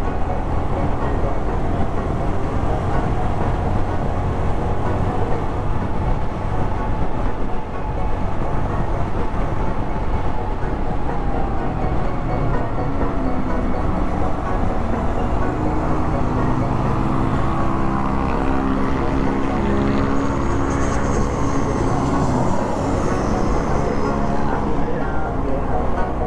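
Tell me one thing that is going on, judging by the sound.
A motorcycle engine hums steadily up close as it rides.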